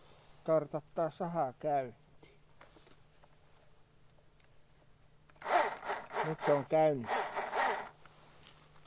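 A battery chainsaw whirs up in short bursts and winds down.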